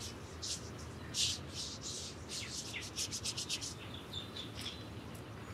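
A strap ratchets with rapid clicks as it is tightened.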